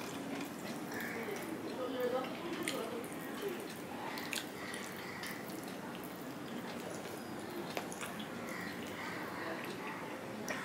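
Fingers squish and mix food on a metal plate.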